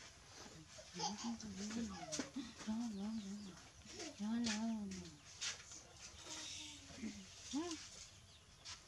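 A young woman talks softly and close by.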